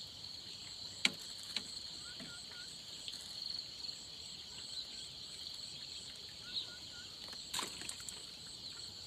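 Fishing gear clicks and knocks close by.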